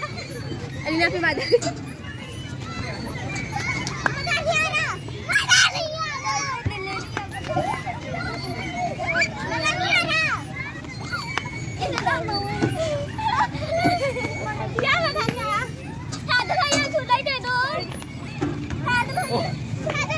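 Children shout and squeal excitedly close by.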